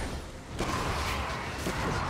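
Magical spell effects whoosh and crackle in a fight.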